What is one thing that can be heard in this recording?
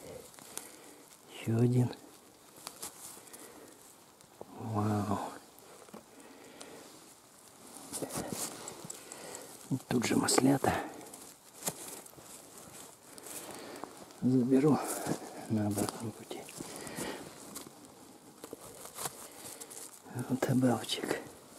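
A knife cuts through a mushroom stem.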